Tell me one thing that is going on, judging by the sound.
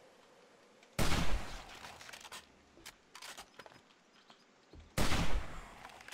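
A rifle fires with a loud, sharp bang.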